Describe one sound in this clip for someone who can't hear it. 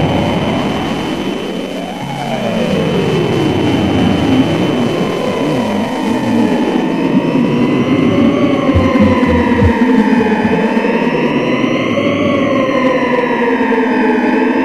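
A violin plays a slow, gliding melody.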